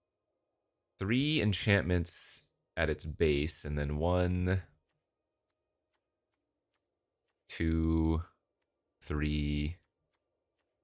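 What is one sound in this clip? A man talks calmly and thoughtfully, close to a microphone.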